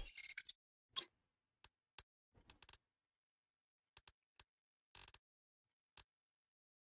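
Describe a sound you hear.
Soft clicks tick now and then.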